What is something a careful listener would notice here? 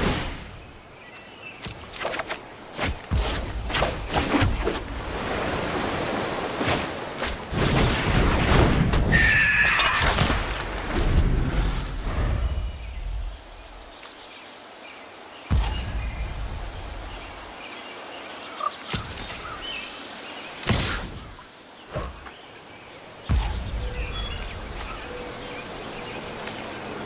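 Game sound effects whoosh and chime as cards are played.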